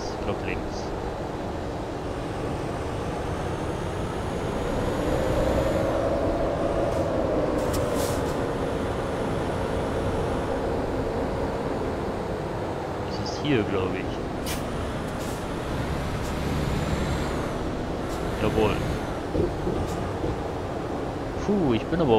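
A truck engine rumbles steadily, rising and falling in pitch as it drives.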